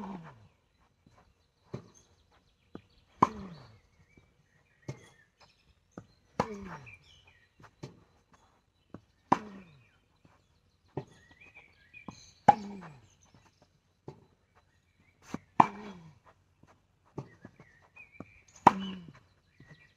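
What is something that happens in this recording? A tennis ball bounces on the court.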